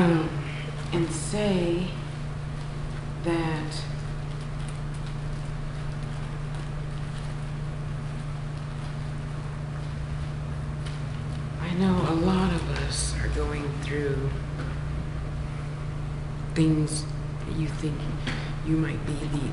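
A middle-aged woman speaks close by, in short bursts with long pauses.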